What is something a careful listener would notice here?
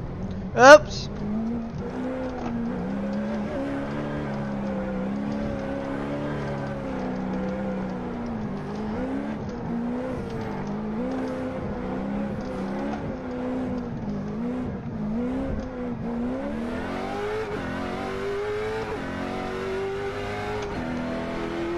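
A race car engine drones steadily and revs higher as it speeds up.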